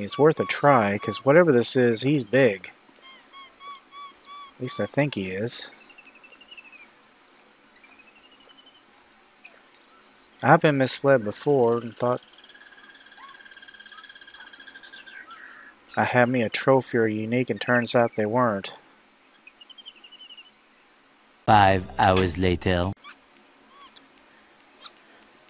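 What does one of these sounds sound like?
A fishing reel whirs as line is wound in.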